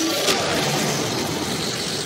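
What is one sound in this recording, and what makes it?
Energy beams crackle and hiss.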